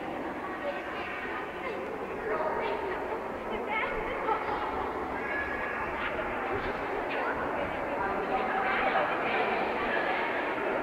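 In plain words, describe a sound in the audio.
Children's voices chatter throughout a large echoing hall.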